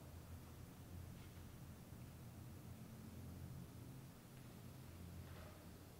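Paper pages rustle as they turn.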